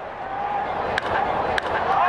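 A bat cracks against a baseball.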